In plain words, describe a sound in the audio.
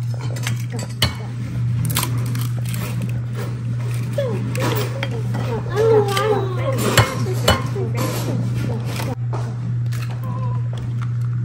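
An egg cracks against a bowl's rim.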